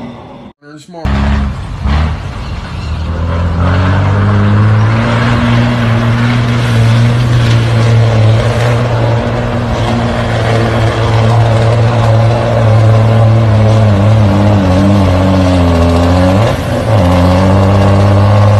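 Tyres squelch through thick mud.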